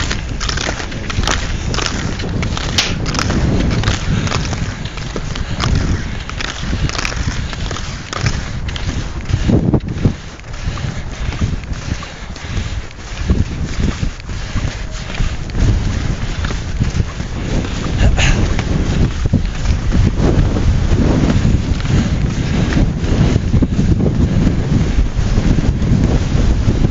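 Strong wind gusts and roars outdoors, buffeting the microphone.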